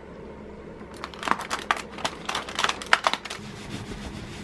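Cardboard tears and crackles as small doors are pulled open.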